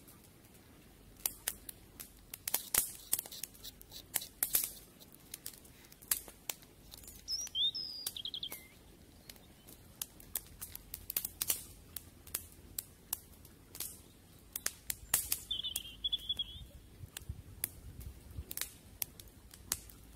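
Breath blows in gusts onto a small fire.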